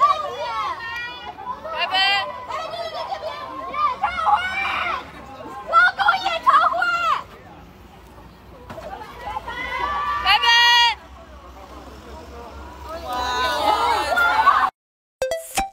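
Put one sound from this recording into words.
Young women in a crowd close by call out and shout excitedly.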